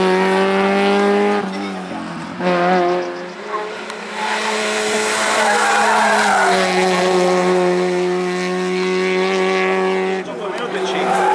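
A rally car engine revs hard and roars close by.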